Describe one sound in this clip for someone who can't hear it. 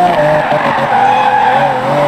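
Tyres squeal as a car skids through a bend.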